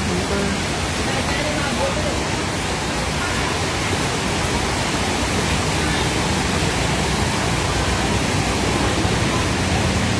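Water splashes as vehicles drive through a flooded street.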